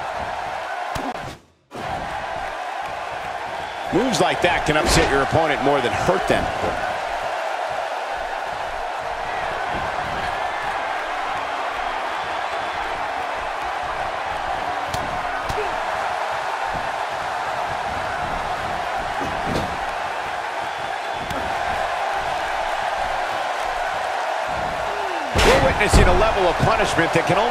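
A large crowd cheers and murmurs steadily in a big echoing arena.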